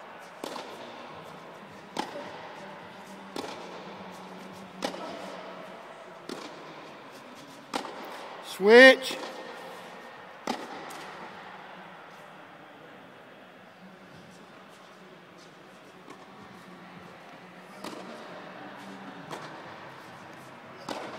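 A tennis ball is struck by a racket with sharp pops that echo in a large hall.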